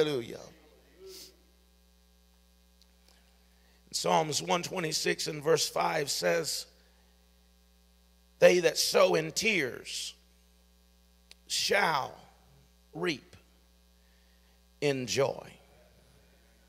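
A middle-aged man speaks calmly into a microphone, pausing between phrases.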